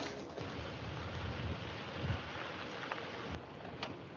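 A car engine hums as a car rolls slowly closer.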